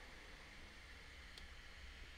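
A small plastic button clicks softly.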